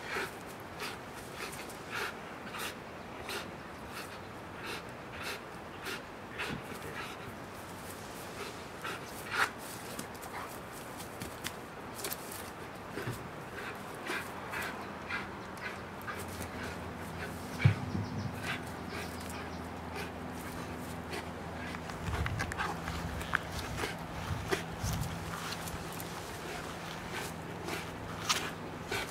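A rope creaks and rustles as a dog yanks on it.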